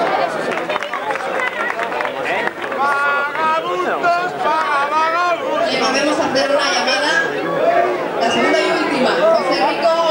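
A large outdoor crowd chatters and calls out loudly all around.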